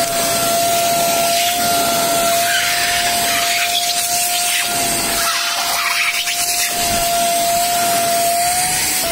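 A vacuum cleaner whines steadily.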